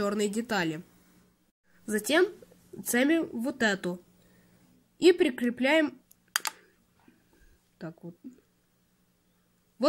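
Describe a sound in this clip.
Small plastic bricks click and snap together.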